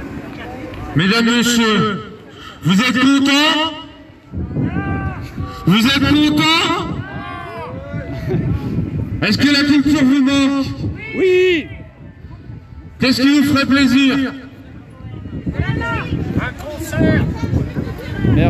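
A man sings loudly through a microphone outdoors.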